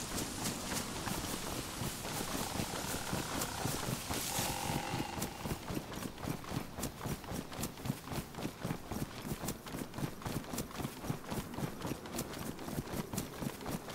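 Footsteps swish quickly through tall grass.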